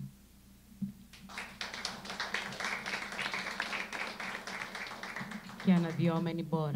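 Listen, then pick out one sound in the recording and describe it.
An audience applauds.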